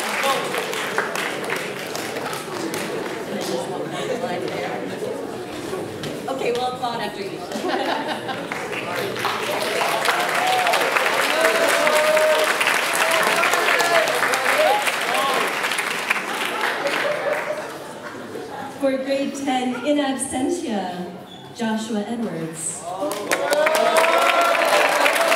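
A middle-aged woman speaks calmly into a microphone, heard through loudspeakers.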